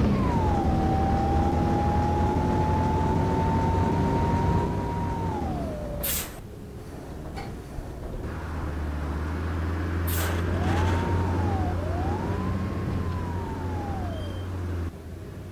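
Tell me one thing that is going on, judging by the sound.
A bus motor whines, its pitch rising and falling as the bus speeds up and slows down.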